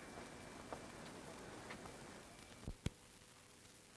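Footsteps climb stone steps.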